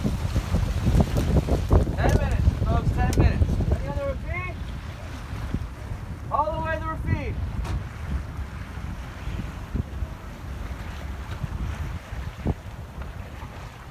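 Wind blusters loudly across the microphone outdoors on open water.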